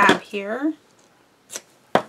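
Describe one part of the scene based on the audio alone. Scissors snip through tape.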